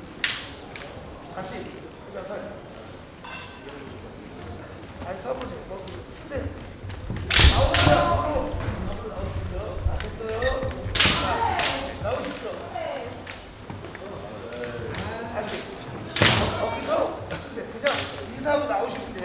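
Bamboo swords clack sharply against each other in a large echoing hall.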